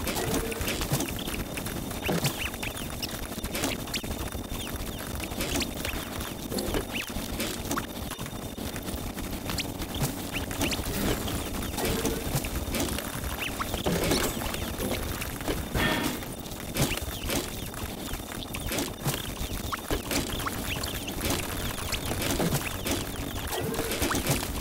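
Game explosions and shots pop and crackle rapidly.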